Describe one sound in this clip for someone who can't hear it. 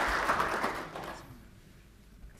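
Applause from an audience fades out.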